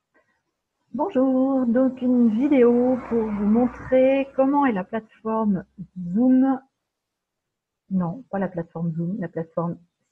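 A middle-aged woman speaks calmly into a microphone over an online call.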